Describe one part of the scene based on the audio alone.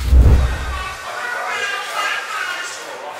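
Many voices murmur in a busy, echoing room.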